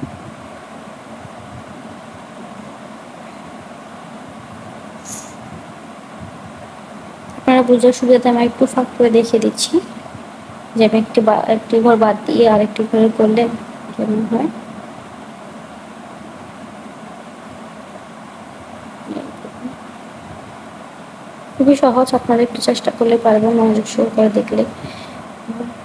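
A crochet hook softly pulls yarn through loops.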